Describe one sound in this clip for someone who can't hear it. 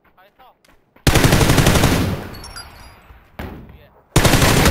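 A rifle fires rapid bursts of gunshots up close.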